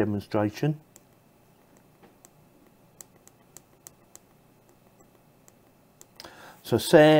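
Small clicks come as fingers press a small device.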